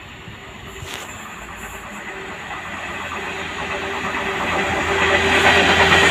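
A diesel freight train approaches, its engine rumbling louder and louder.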